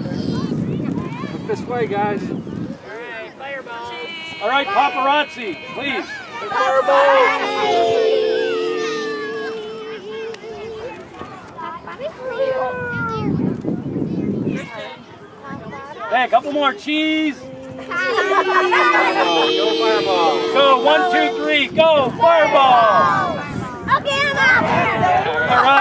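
Women and men talk and call out to the children outdoors.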